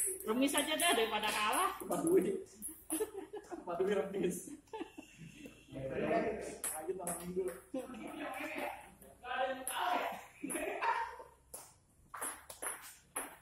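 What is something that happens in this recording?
A ping pong ball clicks against paddles and a table.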